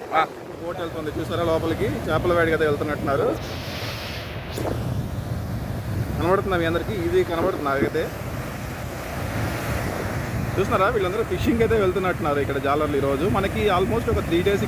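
A young man talks nearby with animation.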